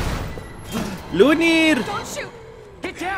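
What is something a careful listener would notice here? A young woman shouts urgently.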